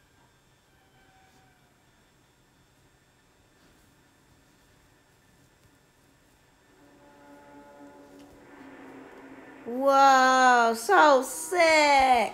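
Film sound plays faintly from a television.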